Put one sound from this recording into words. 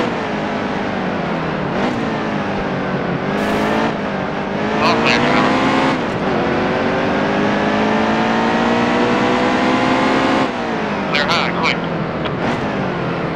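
A race car engine roars, rising in pitch as it speeds up and dropping when it shifts gears.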